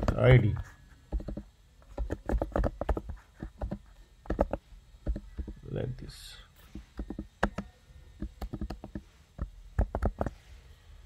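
Keys on a keyboard click rapidly in short bursts.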